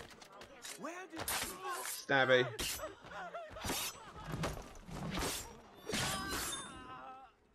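Sharp blows land in a scuffle.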